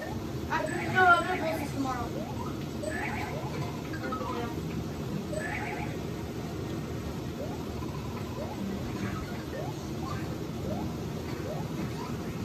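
Upbeat video game music plays through a television speaker.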